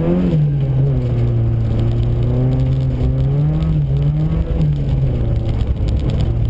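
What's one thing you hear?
Bits of ice and snow tick against the car's body.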